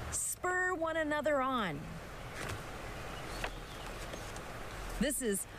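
A woman speaks expressively, close to the microphone.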